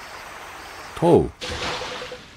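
A splash sounds as a boy jumps into water.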